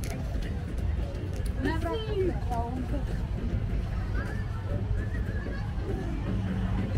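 A group of young women chat nearby as they walk past.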